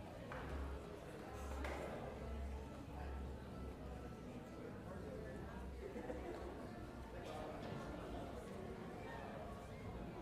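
Musicians shuffle about and knock chairs and music stands.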